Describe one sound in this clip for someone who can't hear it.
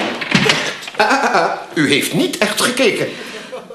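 An elderly man speaks with surprise.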